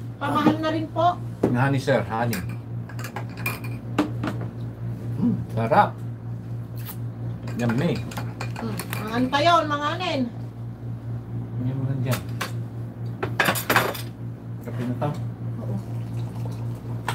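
Dishes clink on a table.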